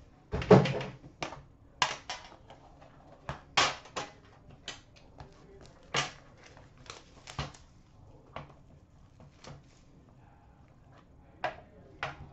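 Cardboard packs rustle and clack sharply as they are handled.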